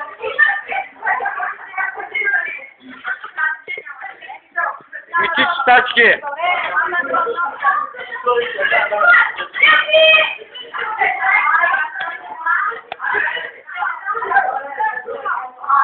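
Several young people talk and shout over one another in a lively crowd.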